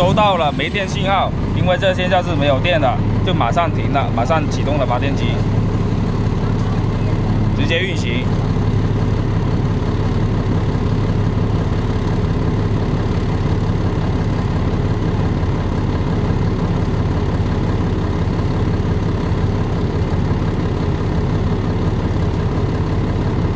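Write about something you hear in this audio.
A diesel generator runs with a steady rumble.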